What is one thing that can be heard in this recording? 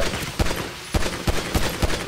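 A pistol fires a shot.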